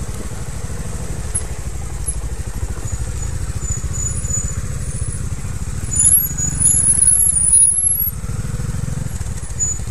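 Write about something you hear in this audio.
A dirt bike engine chugs and revs up close.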